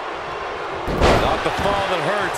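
A wrestler slams down hard onto the ring mat.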